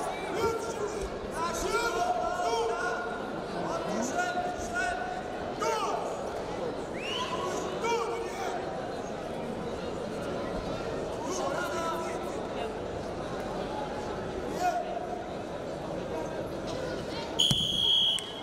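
Coaches and spectators shout loudly in a large echoing hall.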